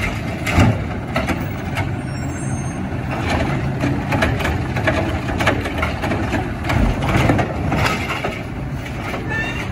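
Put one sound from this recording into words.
A garbage truck's mechanical arm lifts and dumps a bin with clanks and bangs.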